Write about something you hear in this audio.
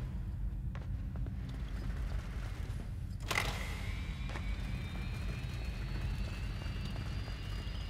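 A heavy crate scrapes as it is pushed along the floor.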